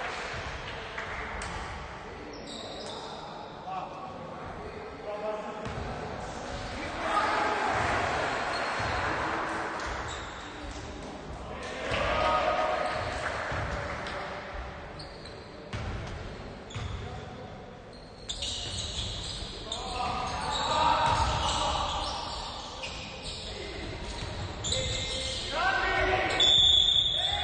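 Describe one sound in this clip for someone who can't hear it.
Young players shout to each other across an echoing hall.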